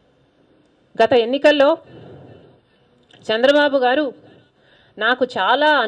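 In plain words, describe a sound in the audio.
A woman speaks calmly and close into a microphone, in short phrases with pauses.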